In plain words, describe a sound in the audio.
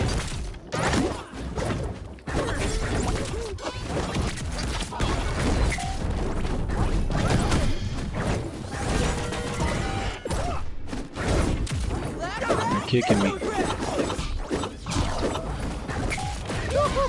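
Video game fighting sounds clash and burst in quick succession.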